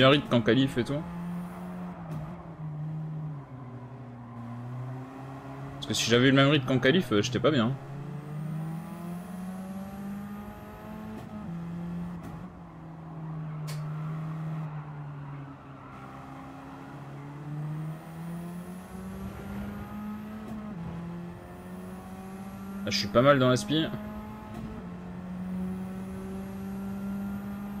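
A racing car engine drones steadily, rising and falling in pitch as the gears shift.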